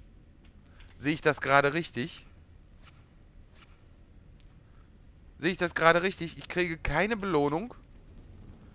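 A man speaks calmly, close to a headset microphone.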